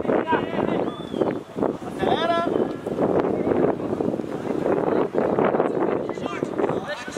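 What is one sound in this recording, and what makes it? Boys shout to each other across an open outdoor pitch.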